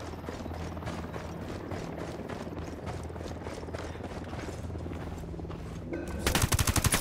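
Boots run on dirt.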